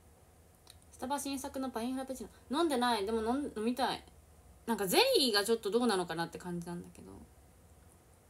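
A young woman speaks softly and casually, close to a microphone.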